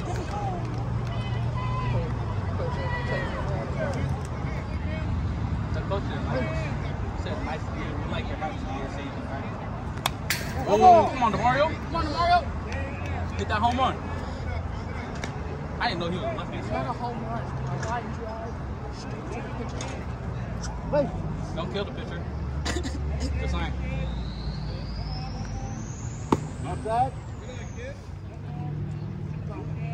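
Young players and onlookers call out and cheer across an open field.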